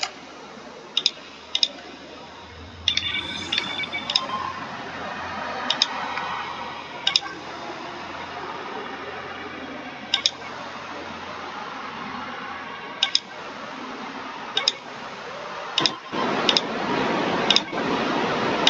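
Short electronic clicks sound as menu buttons are pressed.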